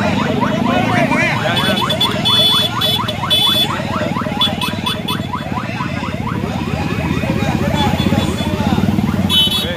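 Motorcycle engines rumble and putter close by.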